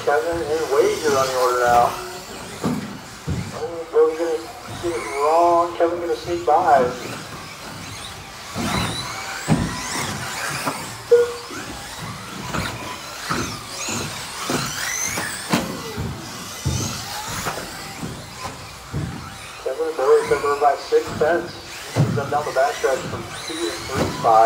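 Model car tyres skid and thump on the track.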